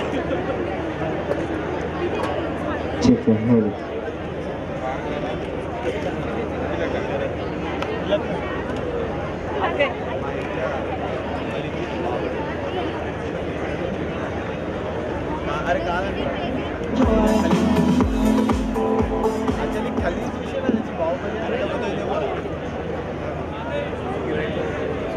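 A large outdoor crowd chatters and murmurs steadily.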